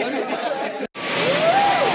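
Fireworks crackle and pop.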